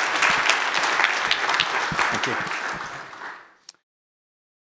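An audience applauds in a large hall, then the applause fades out.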